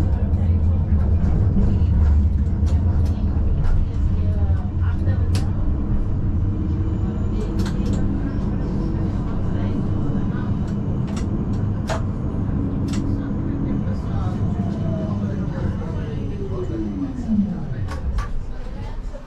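A tram rumbles heavily along its rails.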